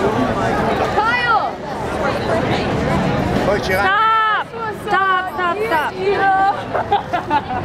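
A young woman calls out in a high voice, close by.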